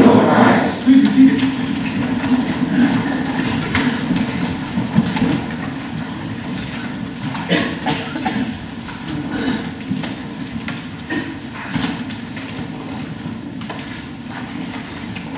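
A man speaks steadily from a distance in an echoing hall.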